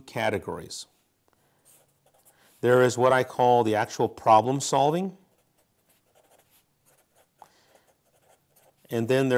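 A man speaks calmly into a close microphone, in short bursts.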